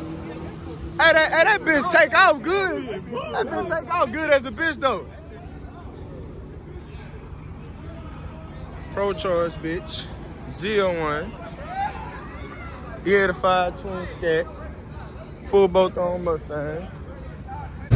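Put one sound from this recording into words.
A young man talks excitedly close by.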